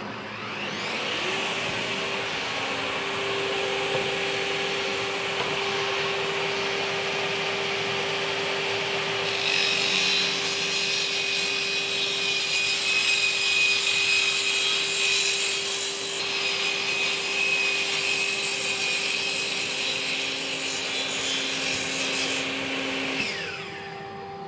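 A table saw motor whines steadily, then winds down.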